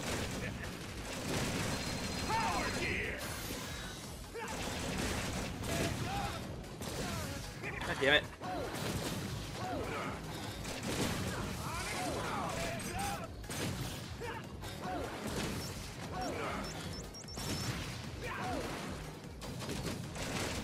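Laser blasts zap from a video game.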